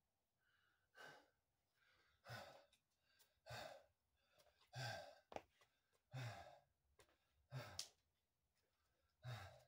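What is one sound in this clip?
Heavy boots thump on a wooden floor at a steady pace.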